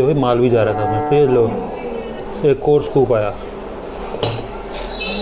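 A metal scoop clinks against a pot.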